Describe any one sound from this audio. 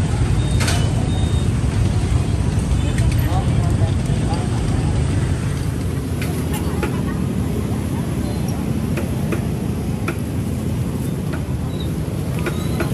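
A busy outdoor crowd murmurs in the background.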